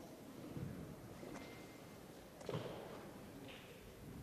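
A gymnast's clubs knock together in a large echoing hall.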